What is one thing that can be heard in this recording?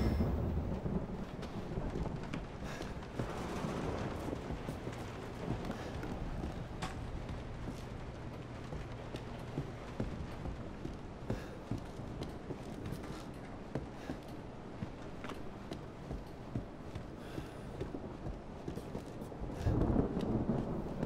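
Slow footsteps thud on creaking wooden floorboards.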